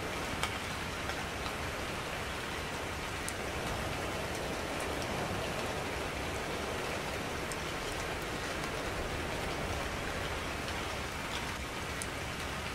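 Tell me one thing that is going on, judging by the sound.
Wind blows steadily through leaves.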